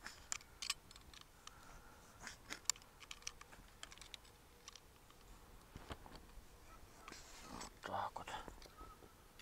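A man's fingers squeeze and handle bait with small clicks and rustles.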